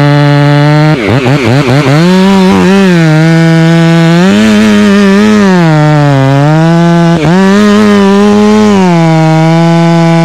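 A chainsaw revs up and down as it cuts through wood.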